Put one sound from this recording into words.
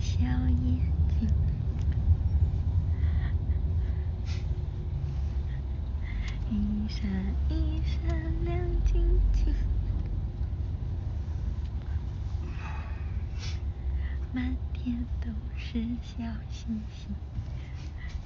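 A young woman speaks softly and casually, close by.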